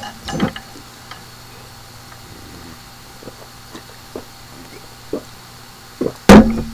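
A young man gulps a drink from a bottle.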